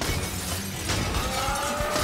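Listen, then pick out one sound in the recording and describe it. Glass shatters and shards tinkle down in a large echoing hall.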